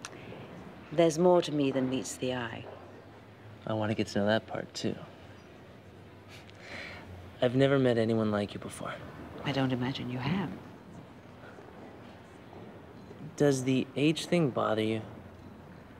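An older woman speaks softly and closely, in short phrases.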